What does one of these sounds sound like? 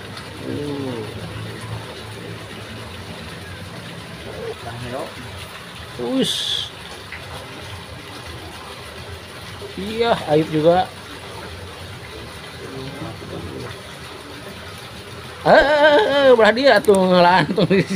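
Water trickles steadily into a pond.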